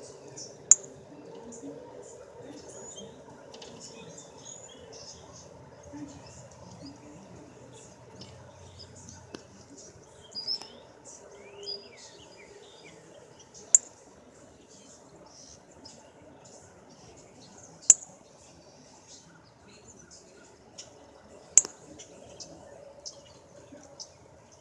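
A small bird chirps and twitters nearby.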